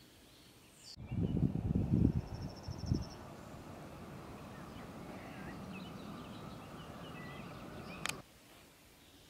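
Wind buffets loudly outdoors in open country.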